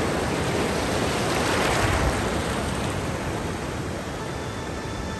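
Shallow waves wash up and fizz over sand close by.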